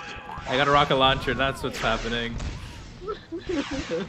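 A cartoon explosion bursts with a bang.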